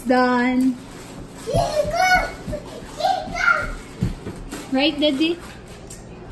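A young child shouts playfully.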